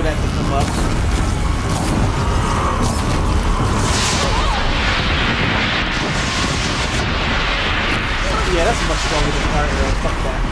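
Explosions boom and crackle in a video game battle.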